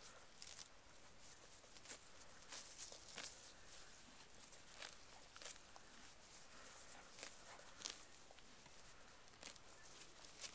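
Hooves thud softly on grassy ground.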